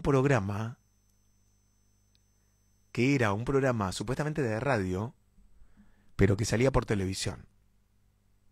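A young man speaks with animation, close into a microphone, in short bursts.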